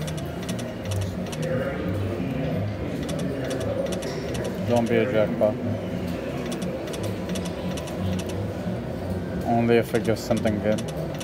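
A slot machine plays a bright electronic melody while its reels spin.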